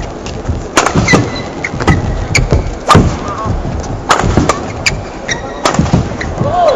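Rackets smack a shuttlecock back and forth in a rally.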